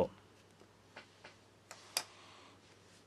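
Small plastic parts click faintly.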